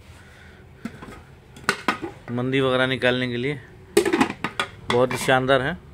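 A plastic spoon clinks softly against porcelain dishes.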